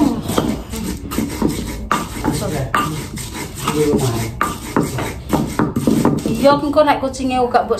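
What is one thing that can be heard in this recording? A stone pestle grinds and knocks in a stone mortar.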